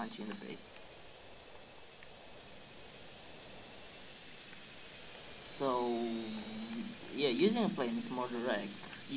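A jet engine roars and whines steadily.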